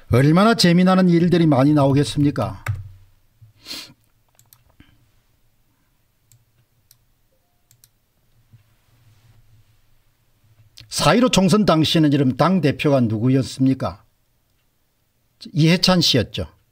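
An older man talks calmly into a close microphone, with pauses.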